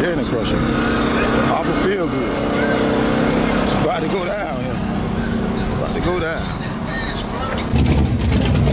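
A car engine idles nearby with a steady hum.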